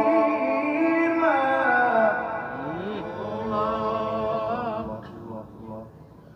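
A middle-aged man chants in long, drawn-out tones into a microphone, heard through loudspeakers.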